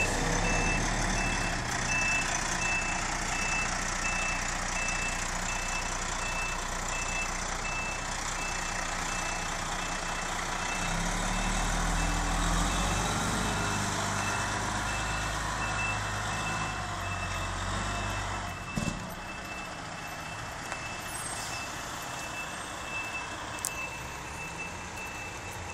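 A reversing alarm beeps steadily and quickly.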